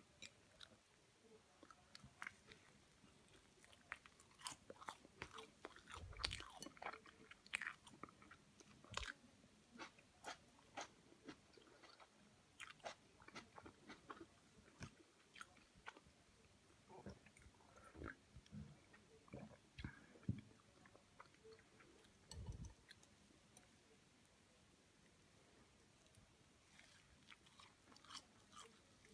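Someone chews crunchy toast close up.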